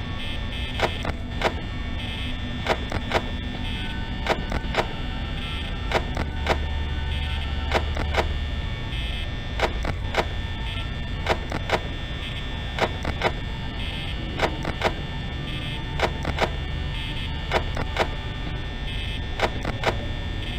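A small electric fan whirs steadily.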